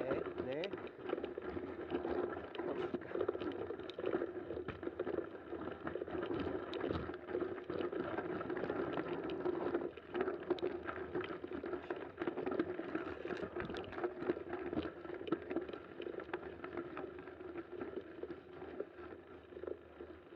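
Bicycle tyres crunch and rattle over a snowy trail.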